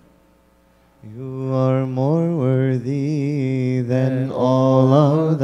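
A man chants loudly through a loudspeaker in an echoing hall.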